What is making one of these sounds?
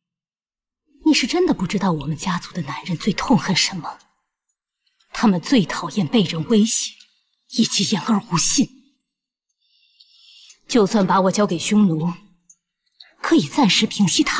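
A young woman speaks quietly and intently, close by.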